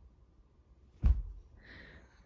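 A baby drops down with a thump onto a carpeted floor.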